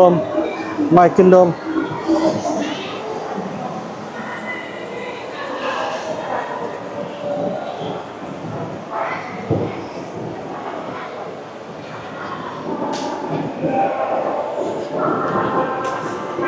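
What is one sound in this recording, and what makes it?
Shoppers' voices murmur and chatter in a large echoing hall.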